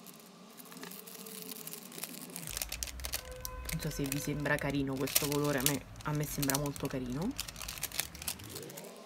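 Thin plastic film crinkles and crackles in hands.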